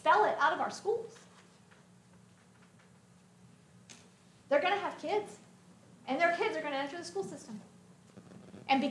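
A woman speaks with animation in short bursts.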